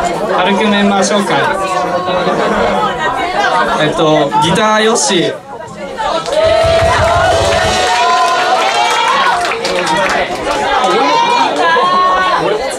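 A rock band plays loudly.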